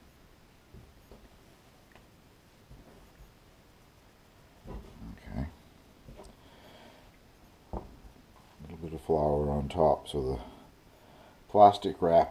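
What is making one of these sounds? Hands knead dough on a wooden board with soft, muffled thumps.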